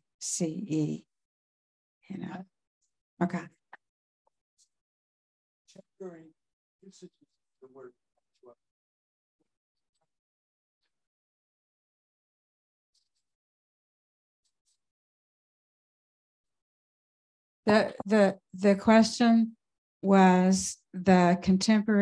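An older woman speaks calmly into a microphone, with long pauses.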